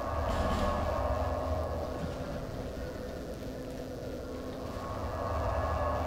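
A small fire crackles.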